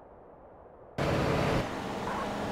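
A car engine roars loudly.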